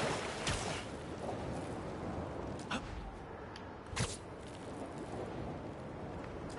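Web lines whoosh and snap as a figure swings through the air.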